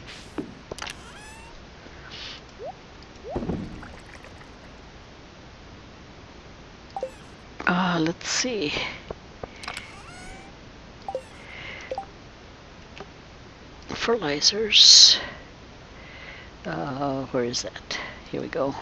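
Short game menu clicks and pops sound now and then.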